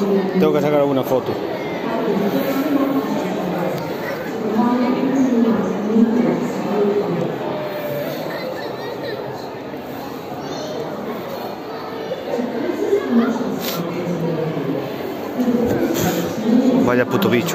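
Adults and children chatter nearby.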